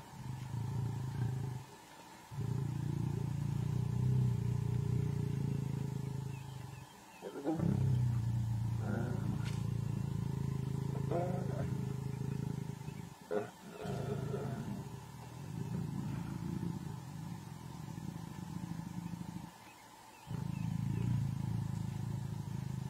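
A lion growls in deep, rumbling bursts close by.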